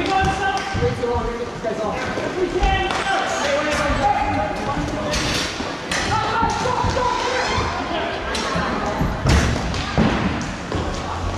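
Players shout and call out across the rink.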